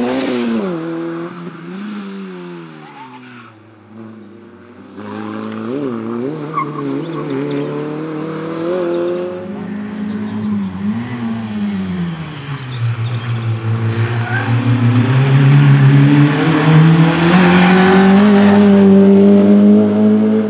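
A rally car engine revs hard and roars closer, with gear changes.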